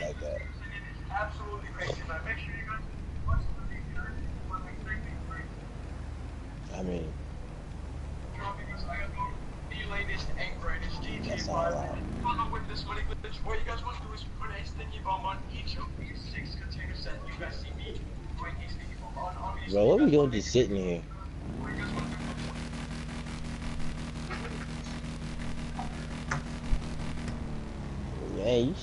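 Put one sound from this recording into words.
Motorcycle engines idle with a low, steady rumble.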